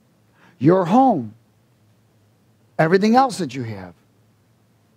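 A middle-aged man speaks emphatically through a headset microphone.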